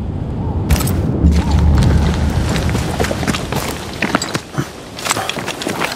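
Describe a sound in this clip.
Footsteps scuff quickly over rough ground.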